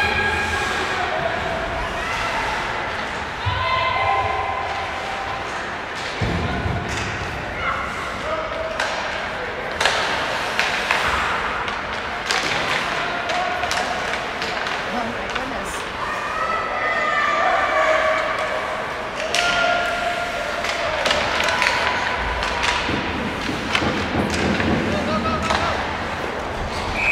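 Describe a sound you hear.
Hockey sticks clack sharply against a puck, echoing in a large rink.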